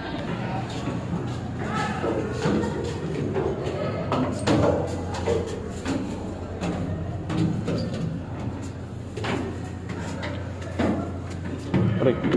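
Footsteps climb metal stairs.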